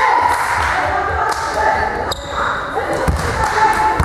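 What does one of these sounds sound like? A volleyball bounces on a wooden floor.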